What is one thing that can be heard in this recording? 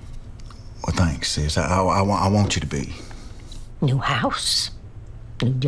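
An elderly man speaks calmly and closely, with feeling.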